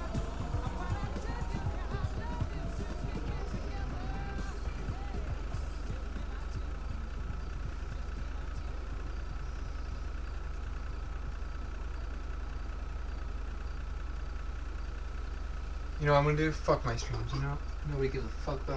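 A truck engine idles with a low, steady rumble.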